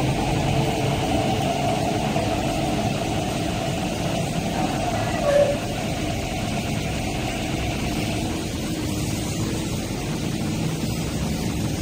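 A train rumbles steadily past on the tracks.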